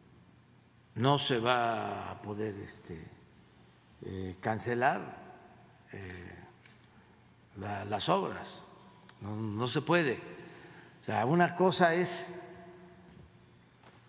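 An elderly man speaks calmly into a microphone, in bursts with pauses.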